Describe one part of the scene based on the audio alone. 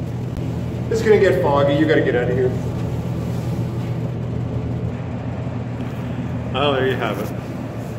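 A man speaks muffled through a respirator mask, close by.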